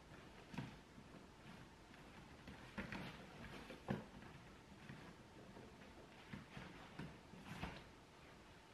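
Gear rustles and knocks as a bag is handled.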